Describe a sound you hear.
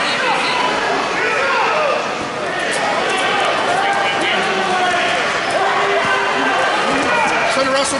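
Shoes squeak on a mat.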